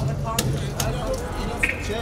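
Men talk nearby.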